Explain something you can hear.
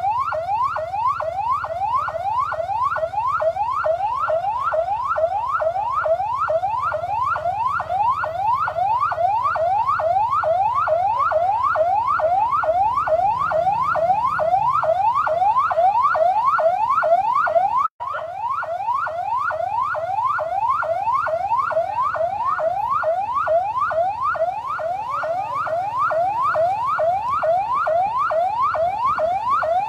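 A police siren yelps in fast rising sweeps.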